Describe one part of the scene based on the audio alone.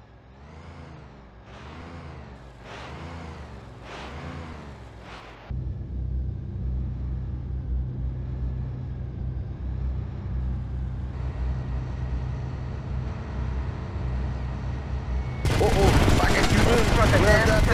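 A motorboat engine drones and whines over the water.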